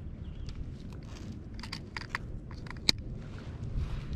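A plastic fish grip clicks shut.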